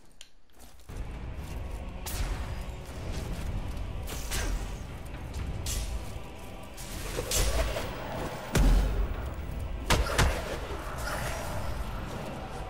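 Heavy blasts and crackling magical bursts go off in a fight.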